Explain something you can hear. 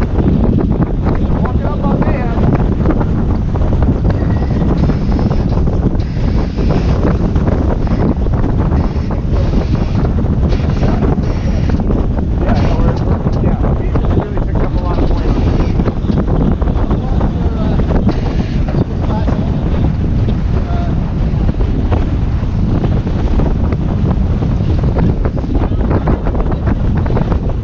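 Men talk on board, partly covered by the wind.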